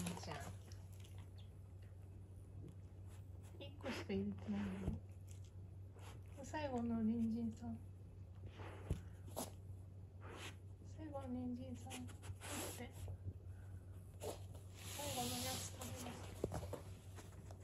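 A plush toy rustles and crinkles under a dog's nose.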